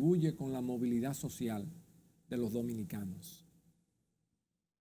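An older man speaks calmly and clearly, close to a microphone.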